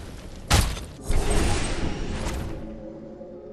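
A magical beam whooshes and hums.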